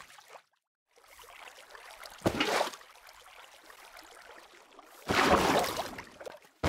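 Water flows and trickles steadily.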